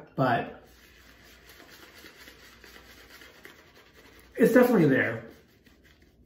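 A razor scrapes through stubble on a cheek.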